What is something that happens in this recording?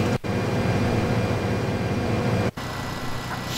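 A combine harvester engine drones.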